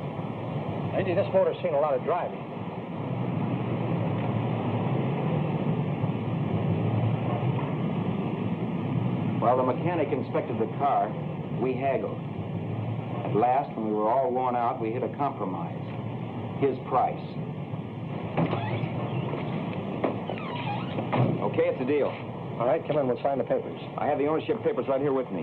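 A man speaks calmly in a conversation.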